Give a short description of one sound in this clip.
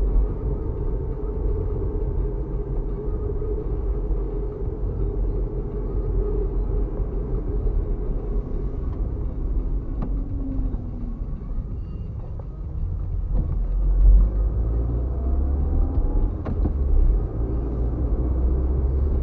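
Tyres roll along the road.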